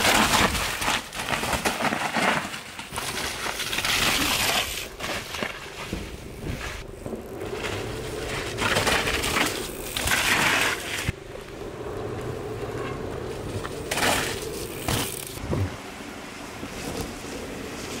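A mountain bike's tyres rumble and skid over a dirt trail.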